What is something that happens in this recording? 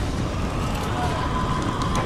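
A burst of fire roars.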